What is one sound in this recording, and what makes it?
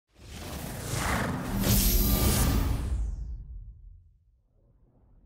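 A console startup tone swells with a whoosh and fades away.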